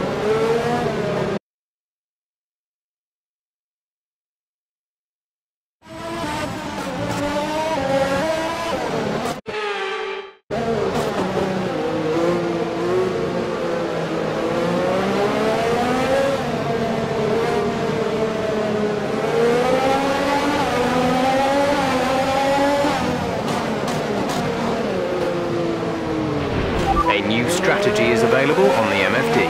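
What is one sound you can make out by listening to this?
A racing car engine whines loudly, rising and falling in pitch as it shifts gears.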